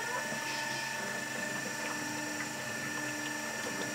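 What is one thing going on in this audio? Liquid pours in a thin stream into a metal pot.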